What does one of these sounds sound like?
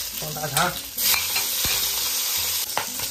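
Meat drops into hot oil and sizzles loudly.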